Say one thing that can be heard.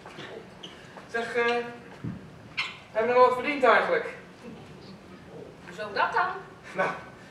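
A man speaks loudly on a stage, heard from the audience.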